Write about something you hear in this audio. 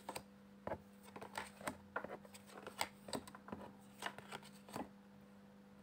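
Fingers tap and click on a hard surface, close by.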